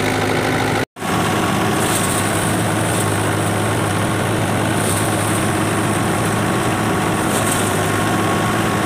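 A threshing machine whirs and rumbles steadily.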